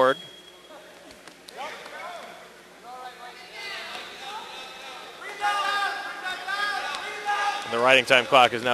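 Spectators shout encouragement in an echoing hall.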